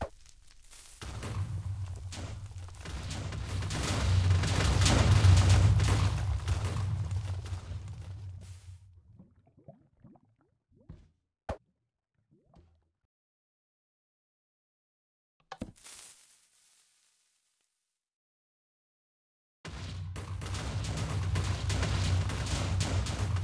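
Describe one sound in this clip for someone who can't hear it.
Loud explosions boom and rumble, then die away.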